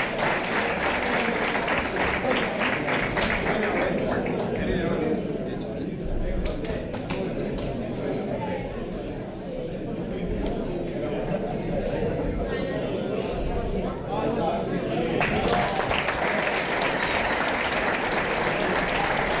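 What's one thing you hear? A large crowd cheers and shouts loudly indoors.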